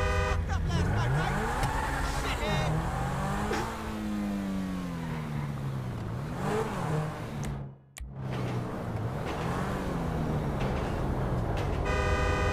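A sports car engine revs up and down as it speeds along.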